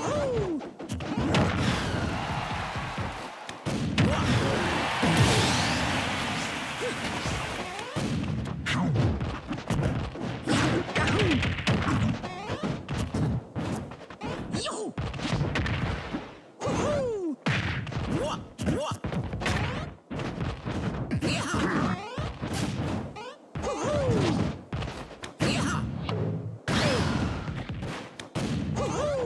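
Game punches and kicks land with sharp smacks and thuds.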